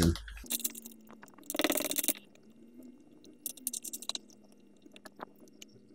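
A plastic cap creaks and clicks as it is twisted onto a bottle.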